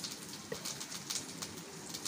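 Water pours into a metal cup.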